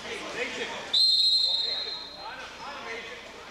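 A referee blows a sharp whistle.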